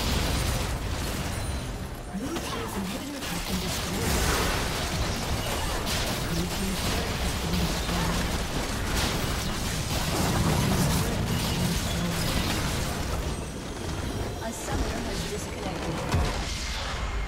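Magic spells and weapon strikes crackle and clash in a busy fight.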